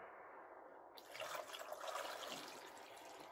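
Water pours from a bowl into a pot.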